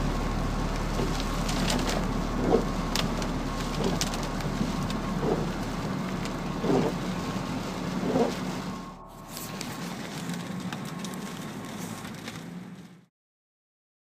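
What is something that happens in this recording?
A car drives along a road with a steady rumble.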